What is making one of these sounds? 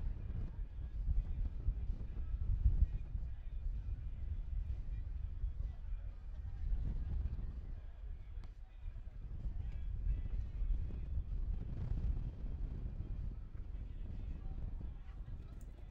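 Wind rumbles across an open microphone outdoors.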